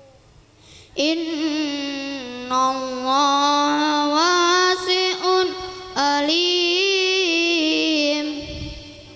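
A boy chants a recitation in a high, melodic voice through a loudspeaker.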